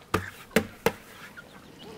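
A metal pail knocks sharply against the rim of a pot.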